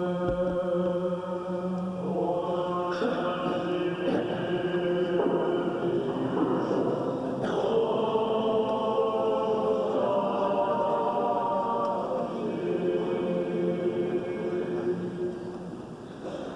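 Men chant together in a slow, sustained song, echoing in a large hall.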